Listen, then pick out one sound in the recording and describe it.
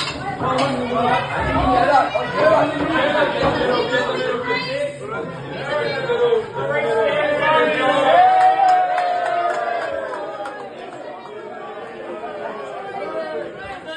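A group of young men sing a team song together.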